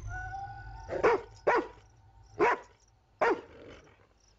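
A dog barks sharply outdoors.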